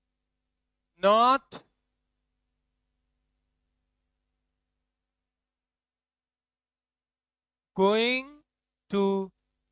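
A young man speaks in short bursts, close by.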